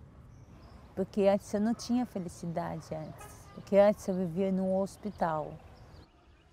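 A middle-aged woman speaks with animation close to the microphone.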